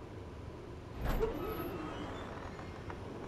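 A wooden door swings open with a soft knock.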